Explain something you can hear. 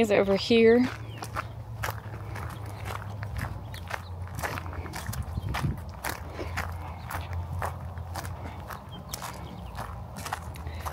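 Footsteps crunch on gravel outdoors.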